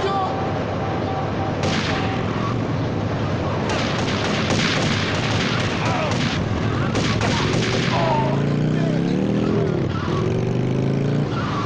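A motorcycle engine revs as it pulls away.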